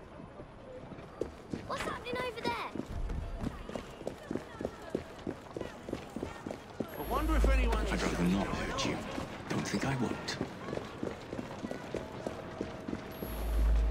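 Footsteps tread steadily on cobblestones.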